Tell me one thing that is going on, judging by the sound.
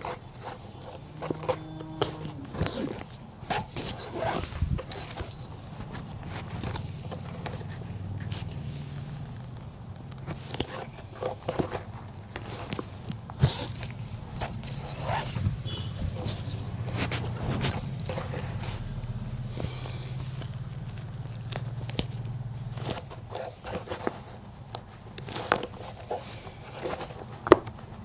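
A needle and thread pull through leather with soft tugs and rasps.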